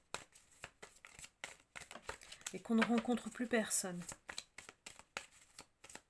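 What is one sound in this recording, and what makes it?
Paper cards rustle and flick close by.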